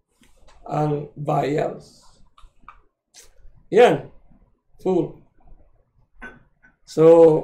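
A middle-aged man speaks calmly and close to a microphone, in short phrases.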